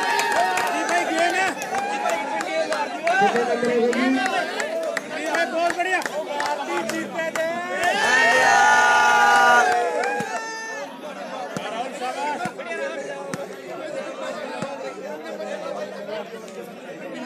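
A crowd of young men shouts and chatters outdoors.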